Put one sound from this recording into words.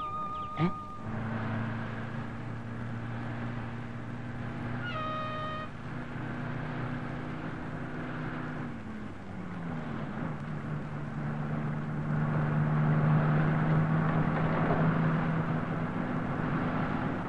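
A bus engine drones steadily, dropping in pitch once as the gears change.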